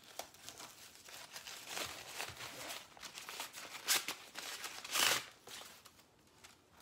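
A fabric bag rustles as it is handled.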